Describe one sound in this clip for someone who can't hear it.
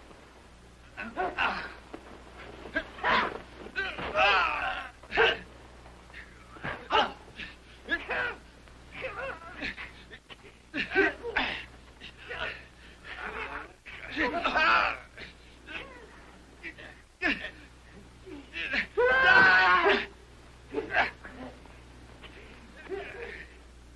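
Men grunt and shout as they scuffle close by.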